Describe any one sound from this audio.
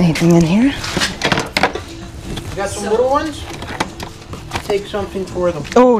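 Plastic toys rustle and clatter as a hand sorts through them.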